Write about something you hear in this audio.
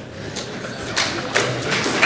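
An elderly woman laughs.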